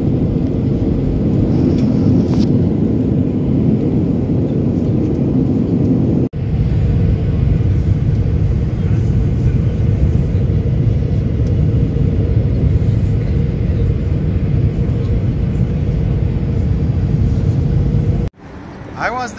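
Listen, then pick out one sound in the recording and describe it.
A jet engine roars steadily inside an aircraft cabin.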